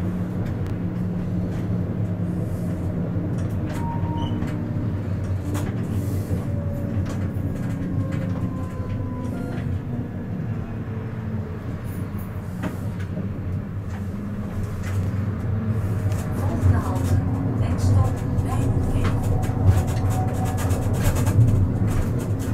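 A tram hums steadily as it rolls along its tracks.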